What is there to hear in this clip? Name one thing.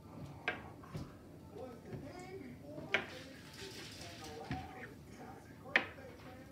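Dominoes click as they are set down on a wooden table.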